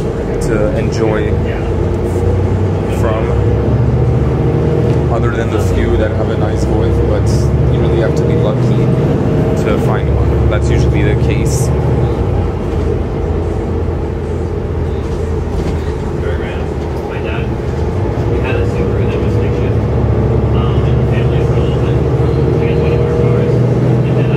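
A bus engine hums and drones steadily while driving.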